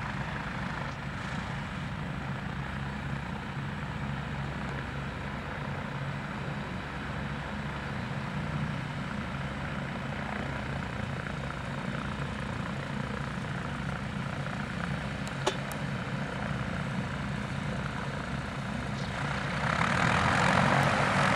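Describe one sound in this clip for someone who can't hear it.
An airship's engines drone steadily close by.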